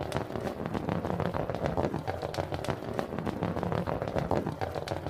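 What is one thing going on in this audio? Many small balls roll and clatter down a winding wooden track.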